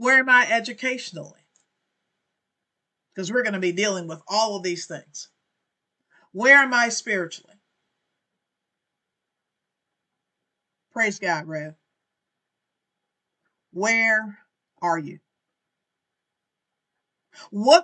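A woman speaks calmly and close to a microphone, pausing between phrases.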